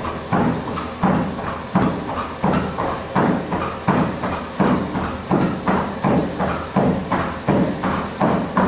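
A horse's hooves thud in a trotting rhythm on a treadmill belt.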